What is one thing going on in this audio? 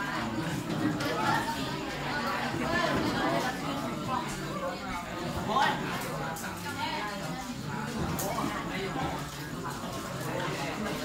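Many young boys chatter and murmur together in a room.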